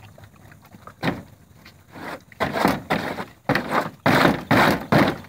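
Horses munch and slurp feed from a trough close by.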